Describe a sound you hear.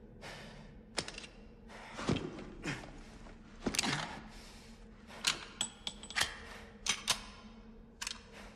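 Metal clicks and clacks as a pistol is picked up and handled.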